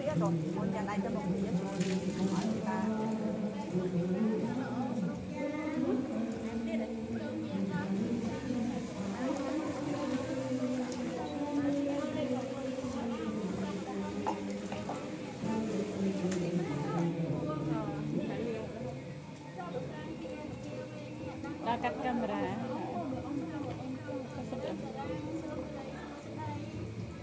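A group of people chant together in a steady, droning tone.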